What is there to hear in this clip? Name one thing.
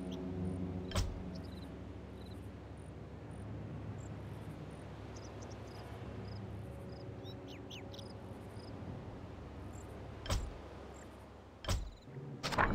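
A game menu button gives a short click.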